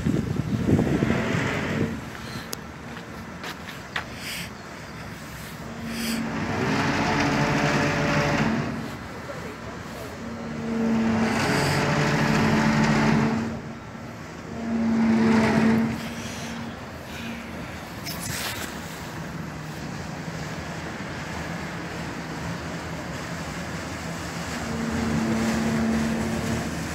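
A large boat's engine hums low and steady as the boat slowly glides past close by.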